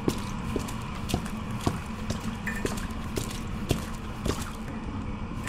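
Footsteps tread slowly and steadily on a hard floor.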